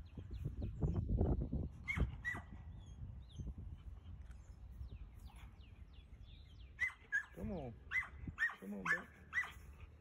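A dog growls and grumbles softly while playing.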